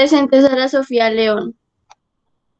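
A young girl speaks through an online call.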